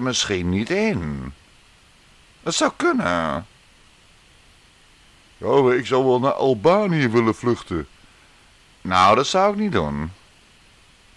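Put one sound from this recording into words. A man speaks with feeling, close by, in short bursts with pauses.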